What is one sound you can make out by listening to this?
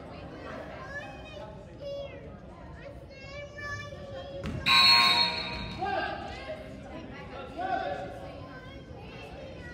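Wheelchair tyres squeak sharply on a hard gym floor in an echoing hall.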